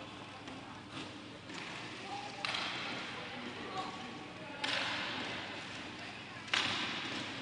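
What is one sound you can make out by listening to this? Skate wheels roll and scrape on a hard rink floor.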